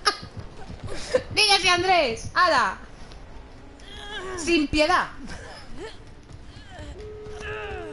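A young woman talks loudly and excitedly into a microphone, her voice rising and falling sharply.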